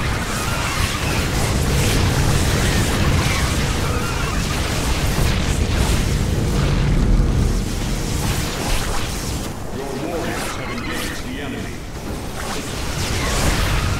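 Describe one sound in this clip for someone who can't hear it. Laser weapons zap rapidly in a busy battle.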